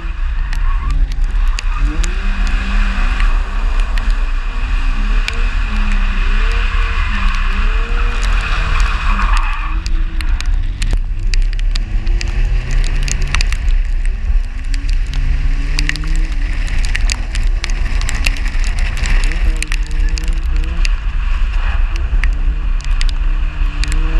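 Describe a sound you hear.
A car engine revs hard, rising and falling.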